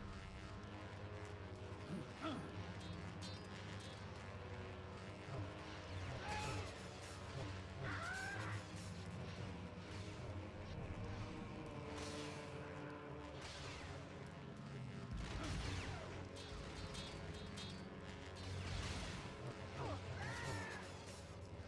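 Lightsabers clash and swoosh in a fight.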